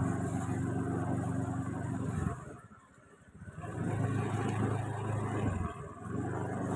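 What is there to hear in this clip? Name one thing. A motorbike engine hums as it rides by.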